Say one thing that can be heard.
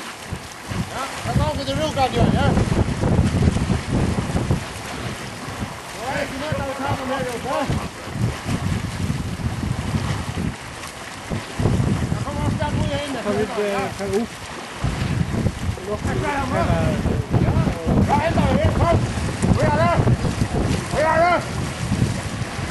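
Several men shout and call out loudly across open water outdoors.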